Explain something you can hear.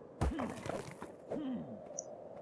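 A hatchet chops into flesh with heavy, wet thuds.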